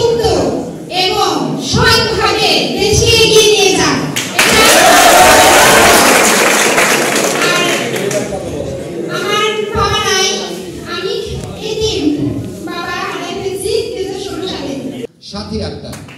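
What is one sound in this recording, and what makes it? A young woman speaks with feeling through a microphone in an echoing hall.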